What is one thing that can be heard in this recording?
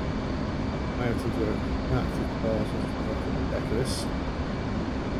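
A young man speaks briefly and calmly through a microphone.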